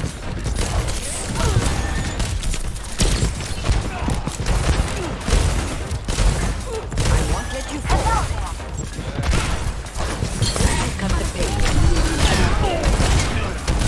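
Gunshots fire rapidly in bursts.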